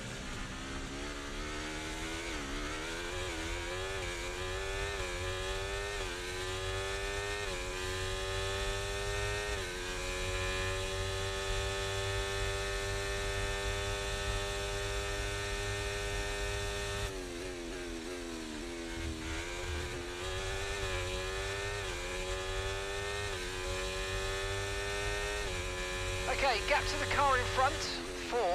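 A racing car engine whines loudly, rising in pitch through each gear and dropping at every shift.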